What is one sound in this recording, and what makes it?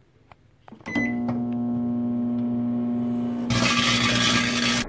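A microwave oven hums steadily.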